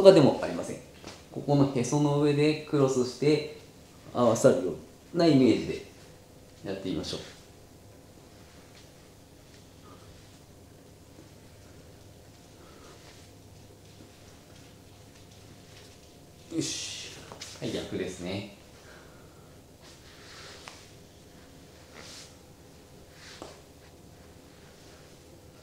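Clothing rustles on a floor mat as a man exercises.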